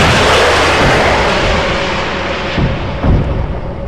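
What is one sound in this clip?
A helicopter explodes with a loud roaring blast.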